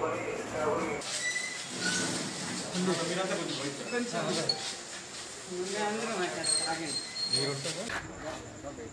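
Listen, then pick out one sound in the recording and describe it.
Men talk nearby.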